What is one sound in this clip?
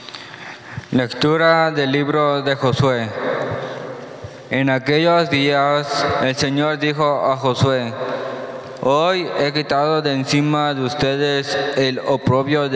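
A young man reads aloud into a microphone, heard through loudspeakers in an echoing hall.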